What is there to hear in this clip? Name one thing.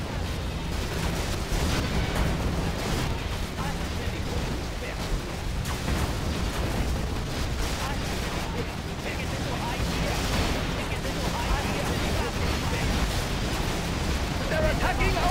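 Explosions boom and crackle in a dense, continuous barrage.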